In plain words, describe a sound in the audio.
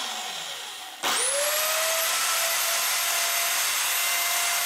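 A table saw motor whirs up to speed and runs with a steady high hum.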